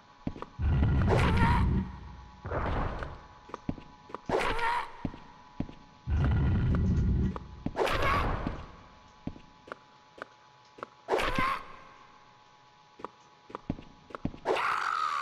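A blade swishes sharply through the air.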